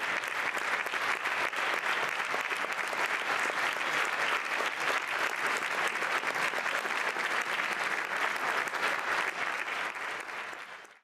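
An audience claps loudly and steadily in a large hall, fading at the end.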